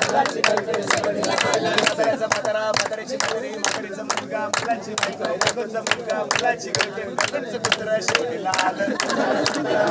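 A crowd of young men and women sings and chants loudly together outdoors.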